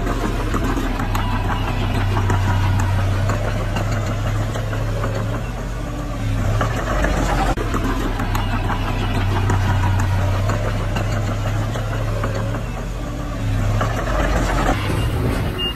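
Dirt and rocks scrape and tumble in front of a bulldozer blade.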